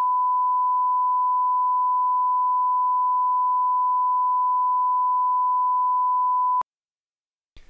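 A steady, high test tone hums, then stops abruptly.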